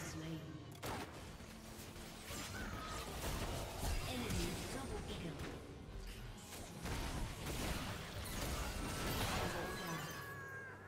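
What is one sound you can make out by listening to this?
Magic blasts and explosions burst in quick succession.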